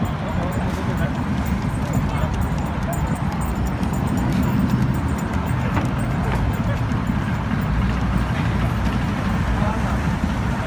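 City traffic rumbles steadily nearby.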